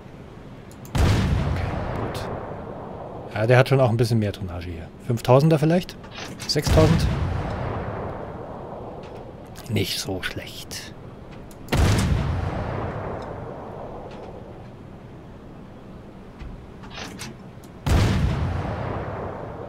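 Heavy guns fire in loud booms that roll away into the distance.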